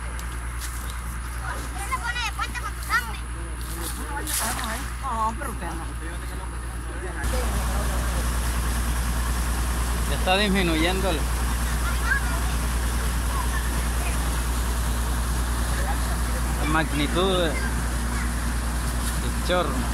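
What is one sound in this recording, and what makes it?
Muddy water rushes and gushes through a channel.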